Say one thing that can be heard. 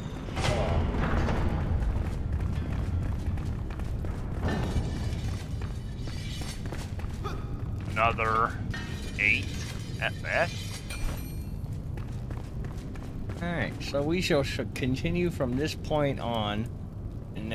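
Footsteps run across a wooden floor.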